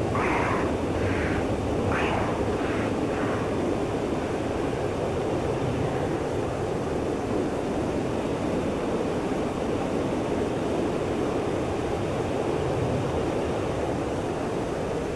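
A jet engine roars steadily from inside the cockpit.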